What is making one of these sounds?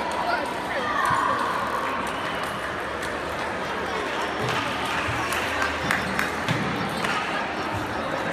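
Many voices chatter in a large echoing hall.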